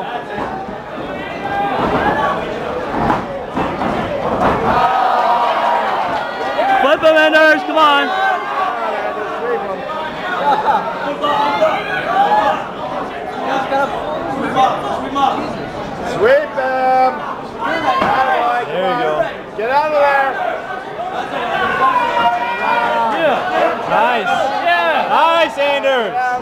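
A crowd of men and women shouts and cheers loudly close by.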